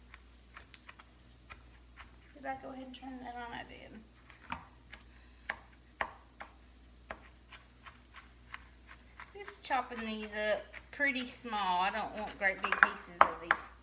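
A knife chops on a cutting board with quick, sharp taps.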